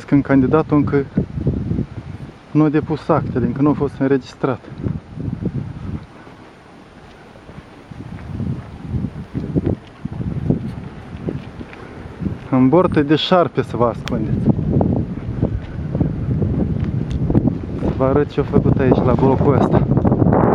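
A man talks close by, calmly.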